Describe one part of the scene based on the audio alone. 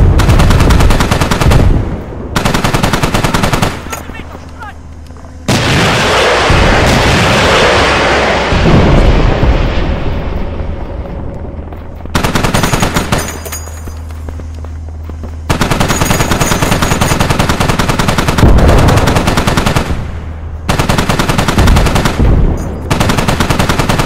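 Heavy cannons fire in rapid bursts.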